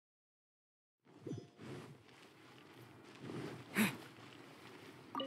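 Quick footsteps run across stone paving.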